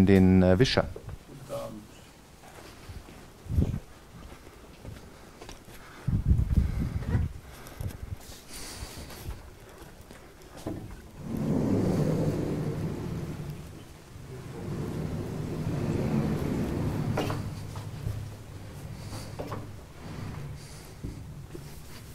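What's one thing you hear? A man speaks calmly in a room with some echo.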